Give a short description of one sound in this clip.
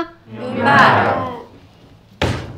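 A young woman answers briefly.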